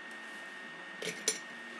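A hand brushes against the microphone with a few sharp bumps.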